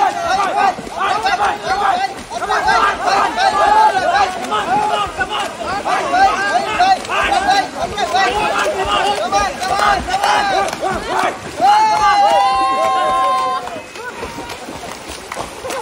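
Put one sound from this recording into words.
Swimmers splash and churn water vigorously.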